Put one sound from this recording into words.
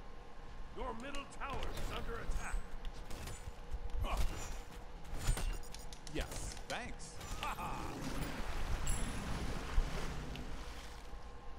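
Sharp magical blasts and weapon strikes crack in quick bursts.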